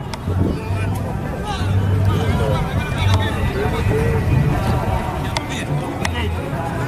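Young men shout across an outdoor football pitch.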